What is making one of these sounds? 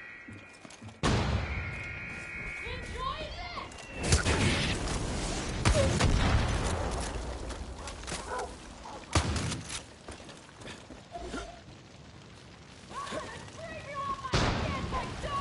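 Gunshots bang loudly, one at a time, with a short echo after each.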